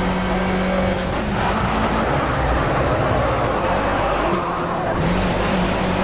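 A racing car engine drops in pitch as it slows down.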